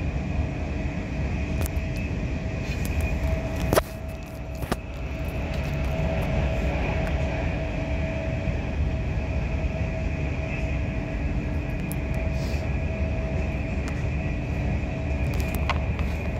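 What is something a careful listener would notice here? A train's motor whines steadily.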